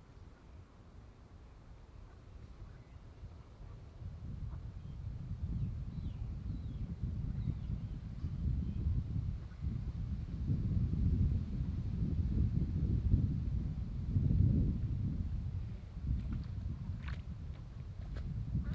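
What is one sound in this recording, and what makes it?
Wind rumbles and gusts across the microphone outdoors.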